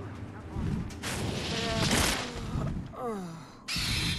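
A large bird's wings whoosh as it swoops down.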